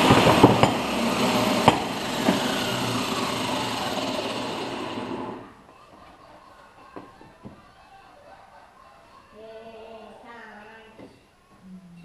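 Metal parts clink and scrape on a workbench.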